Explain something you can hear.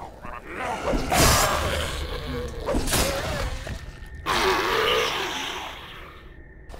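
A blade slashes and thuds wetly into a body.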